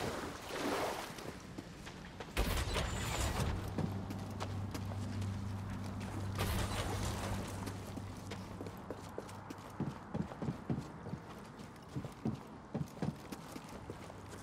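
Footsteps crunch and scuff on rocky ground.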